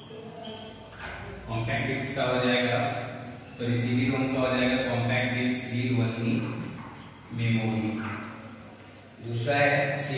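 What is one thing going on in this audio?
A man speaks loudly and clearly, as if teaching a class.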